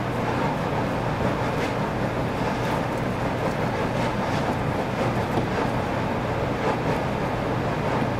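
Small metal parts click and tap against each other.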